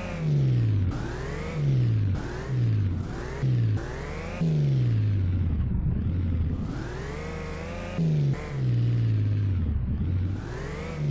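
A car engine revs up and down repeatedly, shifting gears as it speeds along.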